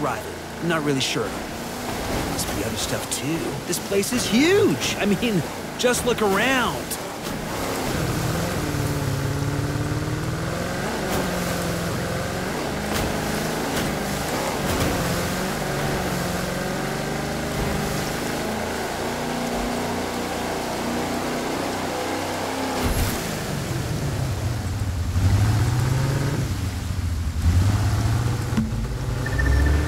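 A powerboat engine roars and changes pitch as the boat speeds up and slows down.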